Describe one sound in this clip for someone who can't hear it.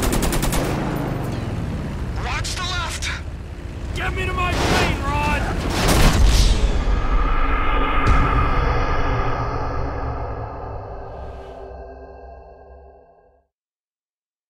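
A propeller plane's engine roars and drones, then fades.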